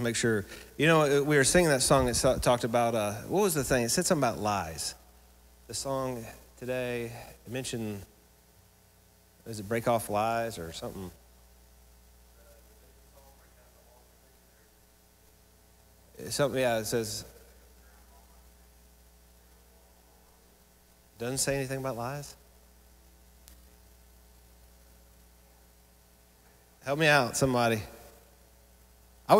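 A man speaks with animation into a microphone, with long pauses between phrases.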